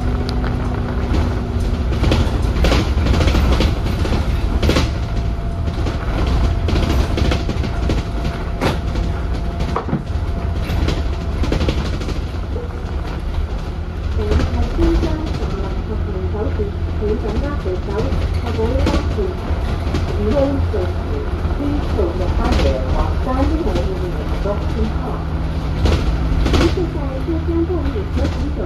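Knocks and rattles sound inside the bus.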